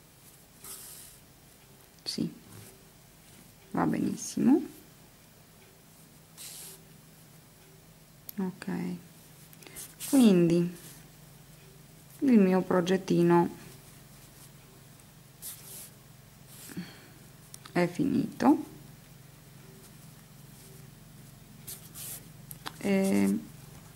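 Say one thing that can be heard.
Yarn softly rustles as it is pulled through knitted fabric.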